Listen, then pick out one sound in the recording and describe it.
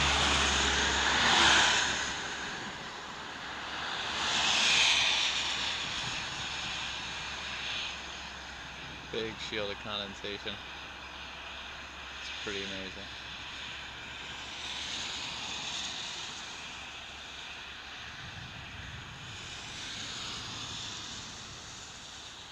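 Passing vehicles whoosh by.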